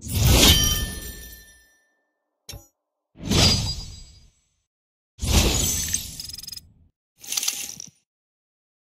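Swooshing game sound effects play in short bursts.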